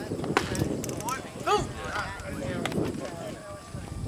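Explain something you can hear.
A baseball pops into a catcher's mitt.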